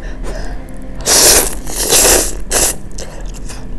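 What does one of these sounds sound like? A young woman slurps noodles loudly close by.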